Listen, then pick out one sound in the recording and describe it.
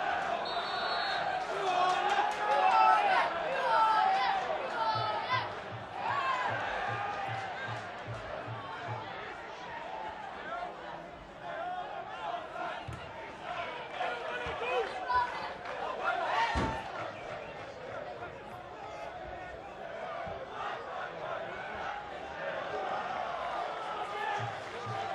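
A large football crowd cheers and shouts outdoors.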